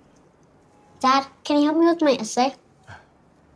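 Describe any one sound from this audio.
A young girl asks a question in a pleading voice, close by.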